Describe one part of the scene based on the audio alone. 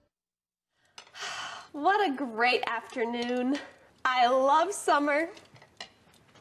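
A young woman speaks cheerfully and clearly.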